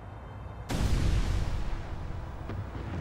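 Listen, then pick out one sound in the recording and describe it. A heavy crash booms with a deep rumble.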